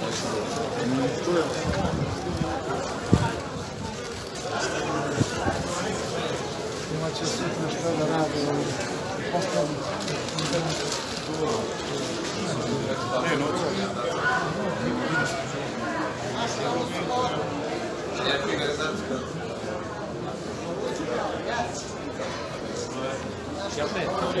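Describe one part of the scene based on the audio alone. A crowd of men and women talks and murmurs close by, outdoors.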